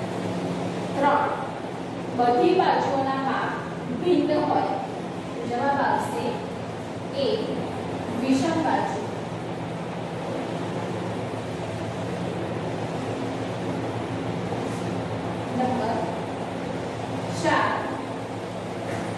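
A woman speaks clearly and steadily nearby.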